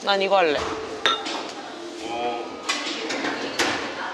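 Glasses clink together as one is picked up.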